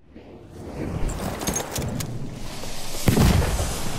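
Gunshots and explosions boom across a battlefield.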